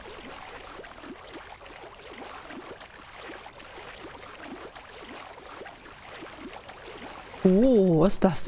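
Water splashes as a swimmer moves through it.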